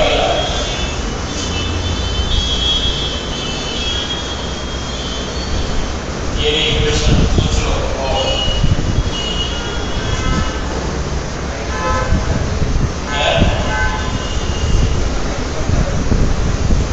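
A young man speaks steadily through a clip-on microphone, as if teaching.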